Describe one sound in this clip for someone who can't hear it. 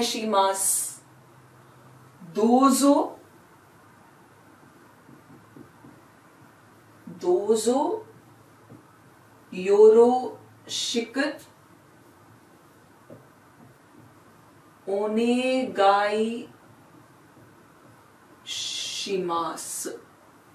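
A young woman speaks calmly and clearly in short phrases, close by.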